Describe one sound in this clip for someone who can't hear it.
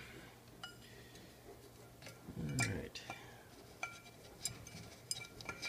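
Glass clinks and rings lightly as it is handled.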